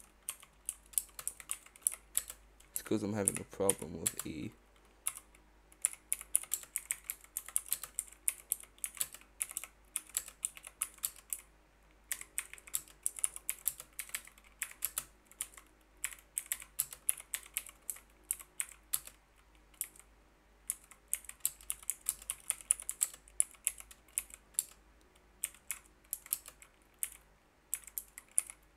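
Keys clack rapidly on a computer keyboard.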